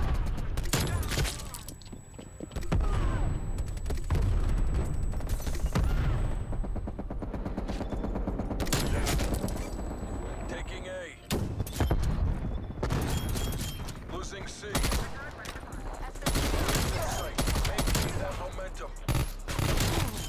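Gunfire from a game rattles in rapid bursts.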